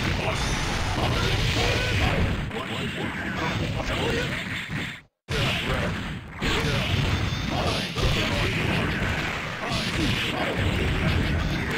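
Punches and energy blasts from a fighting game thump and crackle rapidly.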